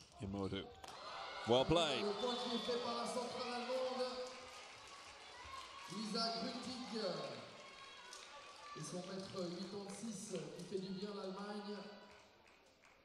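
A crowd cheers and applauds loudly in a large echoing hall.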